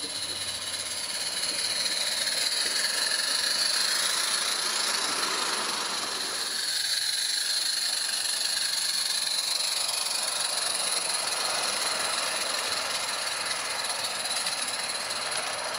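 Small trains clatter steadily along metal rails.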